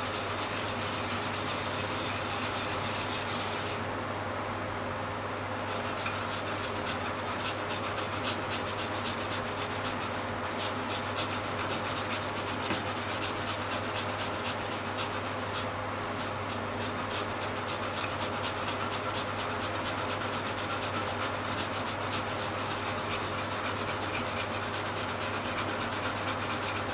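Something rasps rhythmically against a plastic grater.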